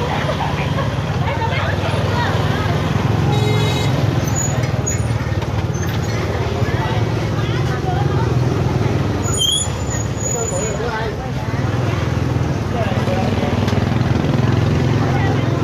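A motorbike engine hums steadily up close.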